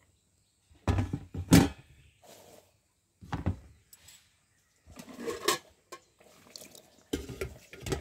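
Steel pots and lids clank against each other.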